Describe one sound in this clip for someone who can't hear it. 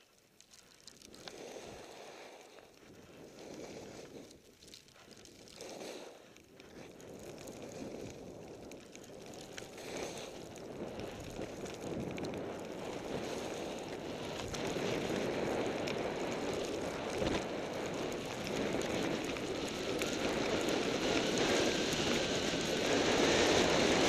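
Skis hiss and swish over soft snow.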